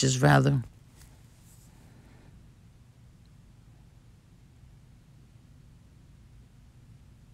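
A small paintbrush strokes softly across a frame.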